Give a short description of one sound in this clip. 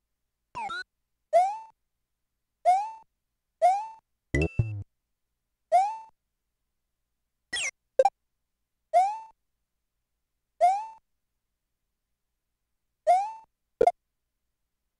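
Short chirpy jump sounds from a video game repeat every second or so.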